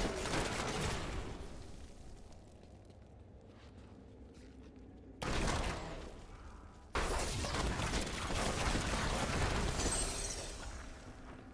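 Magic blasts and explosions crackle and roar in bursts.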